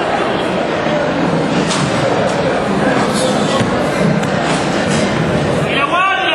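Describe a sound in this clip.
A crowd chatters and cheers loudly in an echoing hall.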